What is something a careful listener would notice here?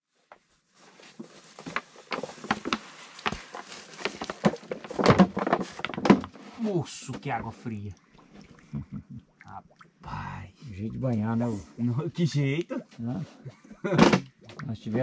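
A man talks calmly nearby, outdoors.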